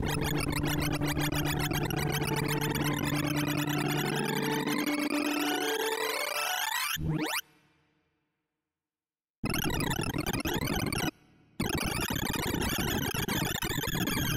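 Rapid electronic beeps chatter in quickly changing pitches.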